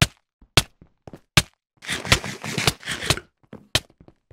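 A game character munches food with quick crunching bites.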